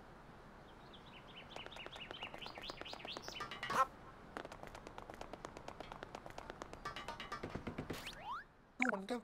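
Quick footsteps patter on a hard surface.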